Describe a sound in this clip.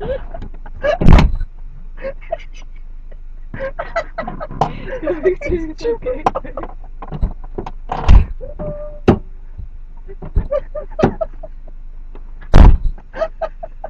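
A car door slams shut hard.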